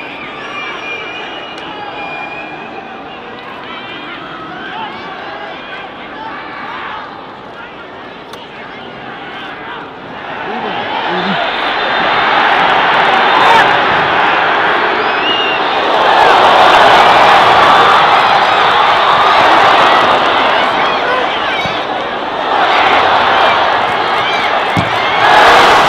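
A large stadium crowd cheers and chants loudly in the open air.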